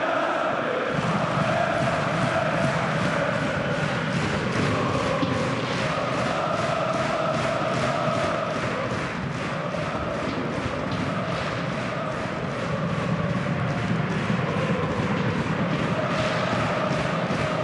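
A stadium crowd claps in a steady rhythm.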